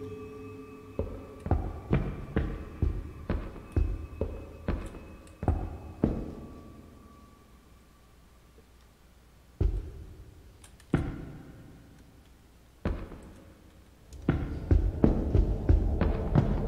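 Slow footsteps thud on a hollow wooden floor.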